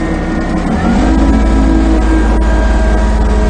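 A tractor engine revs up louder.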